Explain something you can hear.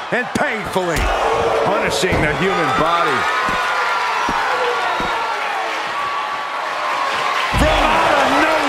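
Heavy thuds ring out as a wrestler is slammed down.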